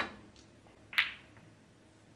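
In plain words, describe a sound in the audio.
Snooker balls knock together with a clack.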